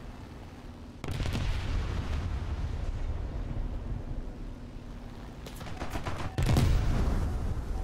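Machine guns fire in rapid bursts.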